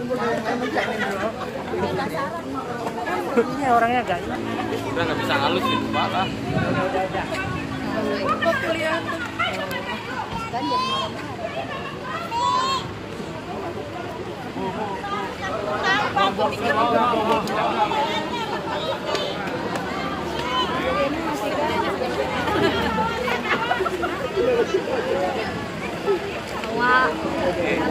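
A crowd of men and women talk and shout all around, close by.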